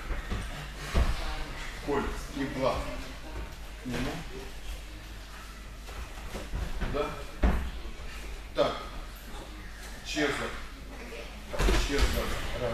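Bodies thud onto a padded mat.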